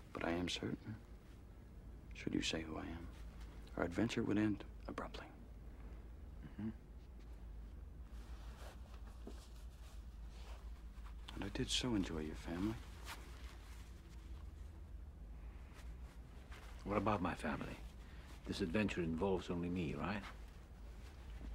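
An elderly man speaks calmly and quietly, close by.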